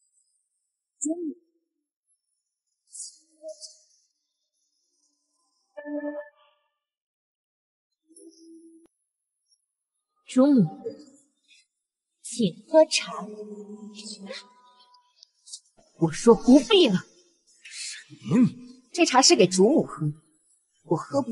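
A young woman speaks calmly and sweetly, close by.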